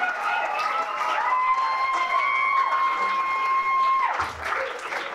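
An electric guitar holds a long ringing note that suddenly stops.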